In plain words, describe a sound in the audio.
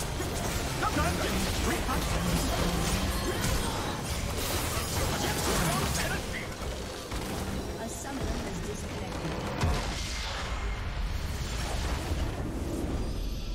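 Game spells and attacks crackle, whoosh and explode rapidly.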